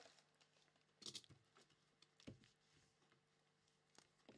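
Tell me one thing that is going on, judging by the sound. A knife scrapes and taps against cardboard.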